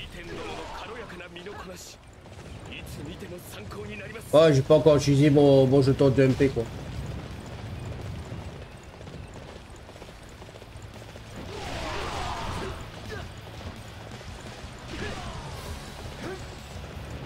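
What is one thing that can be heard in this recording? Horse hooves gallop over dry ground.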